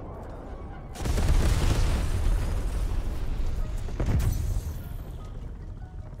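An explosion booms and flames roar.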